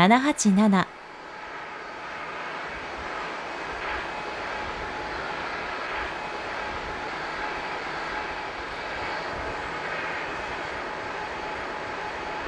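A jet airliner's engines hum and whine steadily as it taxis close by.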